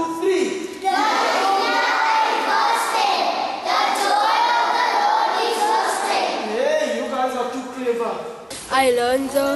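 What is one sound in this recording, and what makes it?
A group of children sing together in a room that echoes.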